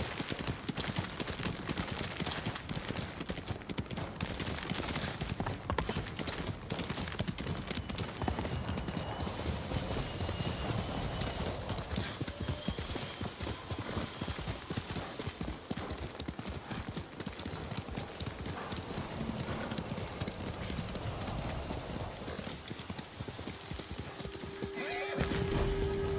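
A horse gallops with rapid, heavy hoofbeats.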